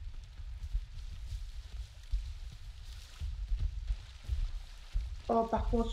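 A shallow stream trickles nearby.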